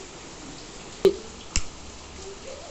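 A lighter clicks as it is struck.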